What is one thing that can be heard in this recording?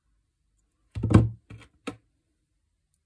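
Small pliers click against metal jewelry parts.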